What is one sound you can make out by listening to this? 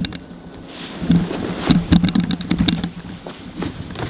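A sled scrapes to a stop on a paved driveway.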